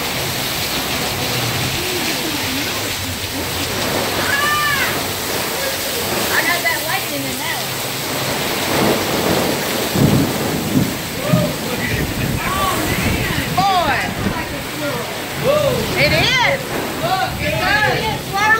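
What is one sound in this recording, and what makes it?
Heavy rain pours down hard outdoors.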